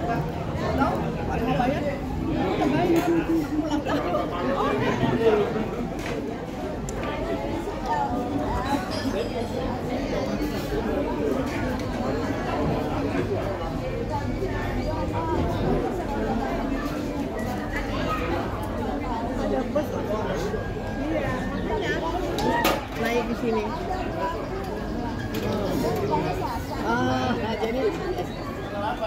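A murmur of voices fills a busy room in the background.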